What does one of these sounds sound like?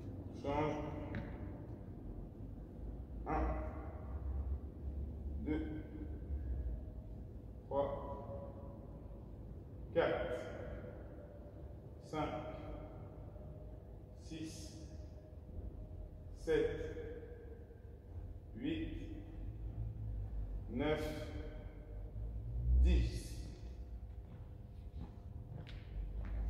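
A man speaks calmly and steadily in a large echoing hall.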